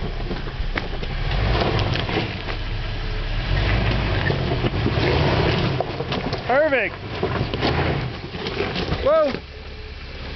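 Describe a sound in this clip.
Tyres crunch and grind over loose rocks.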